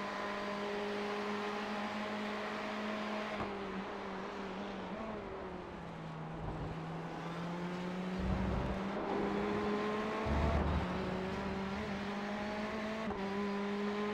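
A race car engine roars steadily, its pitch rising and dropping with gear shifts.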